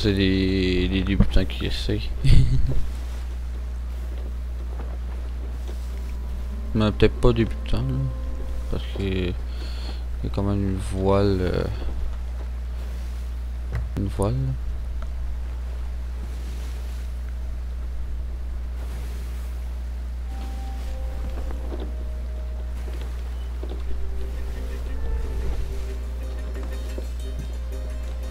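Stormy waves surge and splash against a wooden ship.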